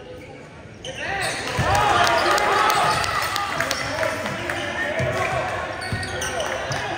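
Spectators cheer and call out loudly in an echoing gym.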